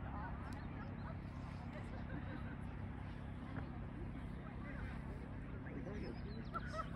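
A woman gives calm commands to a dog outdoors.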